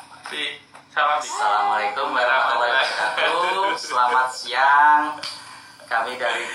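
A man speaks with animation close to a phone microphone.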